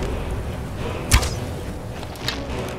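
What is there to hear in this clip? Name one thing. An arrow is loosed from a bow with a sharp snap.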